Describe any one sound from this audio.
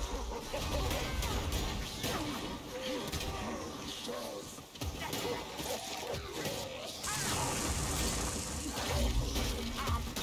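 Swords clash and strike enemies in quick blows.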